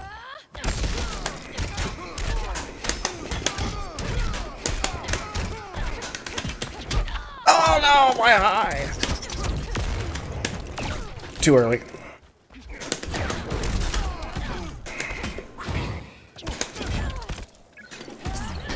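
Punches and kicks thud and crack in quick bursts.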